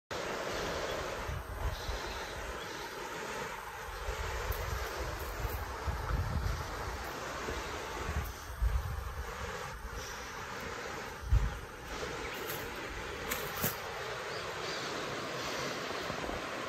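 A river rushes steadily over rocks in the distance, outdoors.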